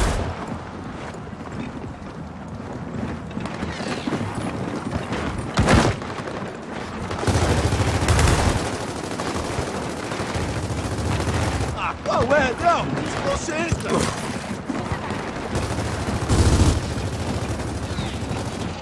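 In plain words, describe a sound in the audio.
Heavy boots thud quickly on hard ground as a soldier runs.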